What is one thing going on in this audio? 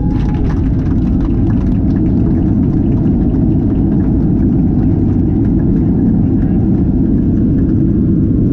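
Aircraft wheels thump and rattle over the runway.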